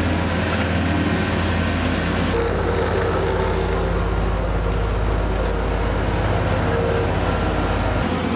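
A diesel engine of a road grader rumbles steadily close by.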